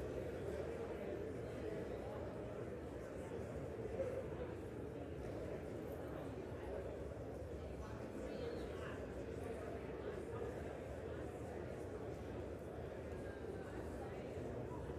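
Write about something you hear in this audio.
A crowd of people murmurs and chatters in a large echoing hall.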